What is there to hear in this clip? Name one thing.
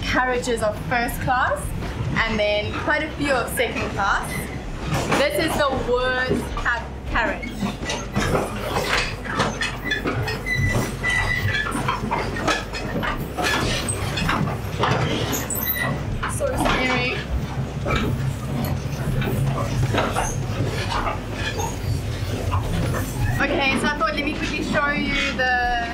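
A train rumbles and clatters steadily.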